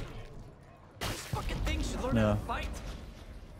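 A fleshy mass bursts with a loud, crashing blast.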